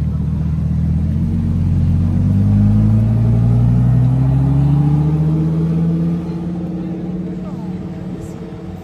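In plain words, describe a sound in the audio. A sports car engine revs up as the car pulls slowly away, then fades.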